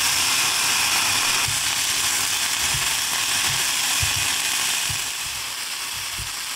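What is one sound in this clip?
Onions sizzle in oil in a frying pan.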